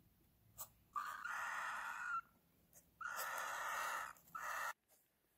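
Cockatiel chicks beg with raspy, hissing calls.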